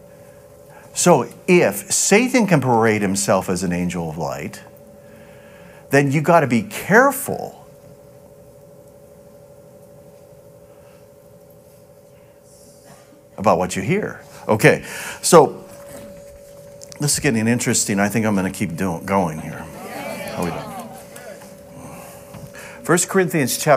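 A middle-aged man speaks with animation into a microphone in a large room.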